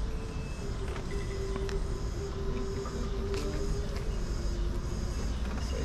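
An electric scooter's motor hums steadily at idle nearby.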